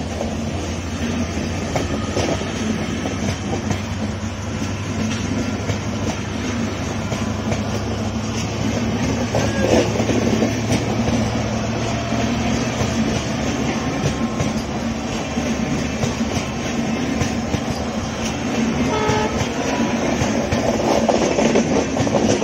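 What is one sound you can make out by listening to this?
Wheels clack rhythmically over rail joints.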